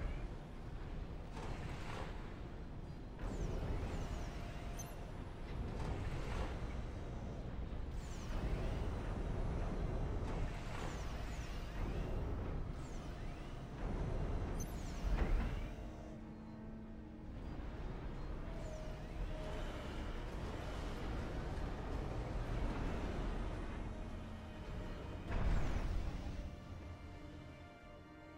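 Weapons fire and explosions boom in short bursts.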